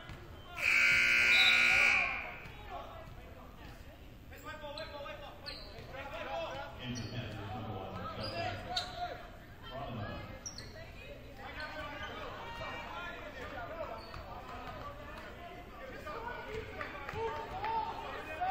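A crowd murmurs and calls out in a large echoing gym.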